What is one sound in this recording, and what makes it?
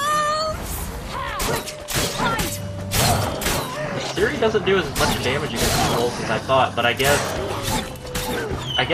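A sword swishes and strikes flesh again and again.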